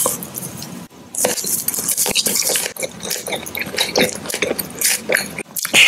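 A man crunches and chews candy close up.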